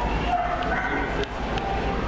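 A cockatiel's beak clicks against a plastic toy.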